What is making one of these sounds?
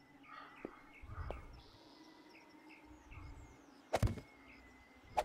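Wooden frames thud softly as they are set into place.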